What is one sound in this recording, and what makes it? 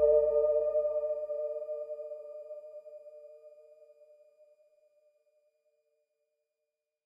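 A small synthesizer plays a sustained chord that slowly fades away.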